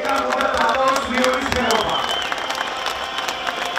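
A large crowd chants and cheers loudly outdoors.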